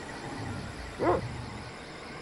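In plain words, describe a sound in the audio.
A sword strikes with a short chiming sound.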